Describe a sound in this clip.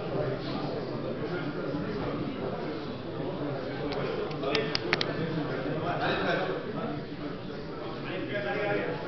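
Several men talk and call out in a room with hard walls.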